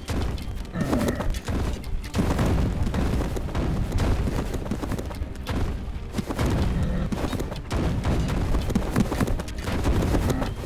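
Weapons clash and thud rapidly in a noisy battle.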